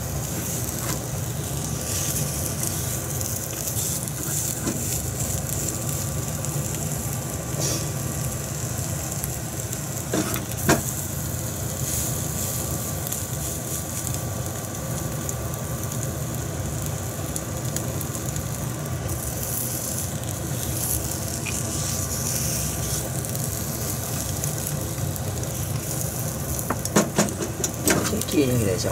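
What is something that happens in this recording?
Egg sizzles in a hot pan.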